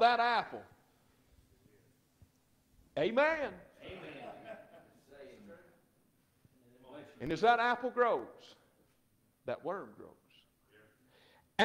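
A middle-aged man preaches with animation through a microphone in an echoing hall, pausing between phrases.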